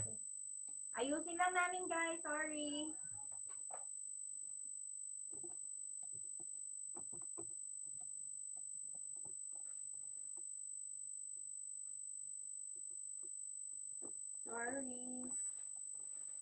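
A woman speaks briefly and casually, close by.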